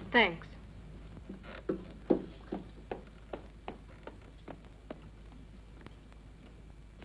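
Footsteps clump on wooden boards.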